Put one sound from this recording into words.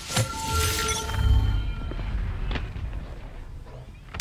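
A magical orb hums and shimmers with bright chiming tones.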